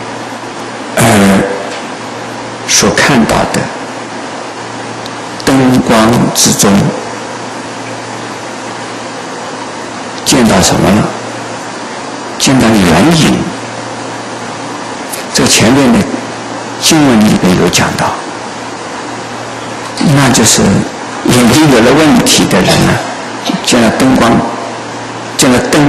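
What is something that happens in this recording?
An elderly man speaks calmly and slowly into a microphone, with long pauses between phrases.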